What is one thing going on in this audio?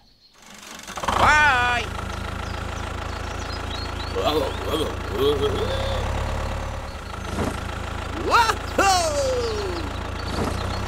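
A toy tractor's engine hums steadily.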